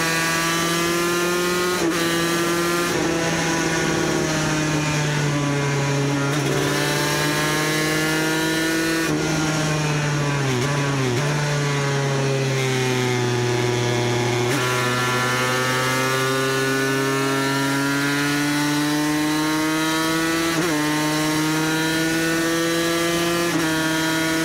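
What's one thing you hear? A motorcycle engine roars loudly up close, its pitch rising and falling as the rider shifts gears.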